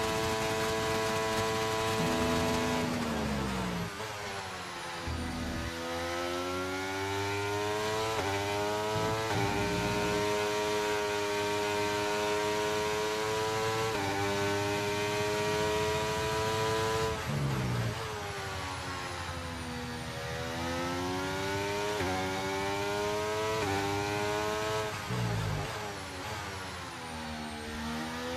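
A racing car engine screams at high revs, rising in pitch and dropping sharply with each gear change.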